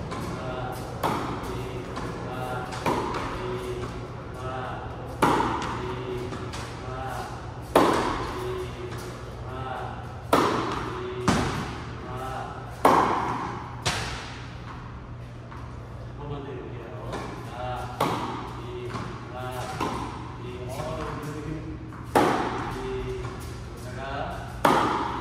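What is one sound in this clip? A tennis racket hits a ball with sharp pops in a large echoing hall.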